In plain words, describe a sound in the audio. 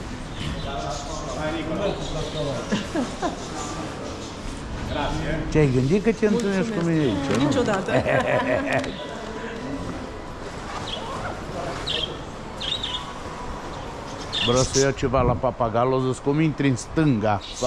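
Shoppers murmur in a large echoing hall.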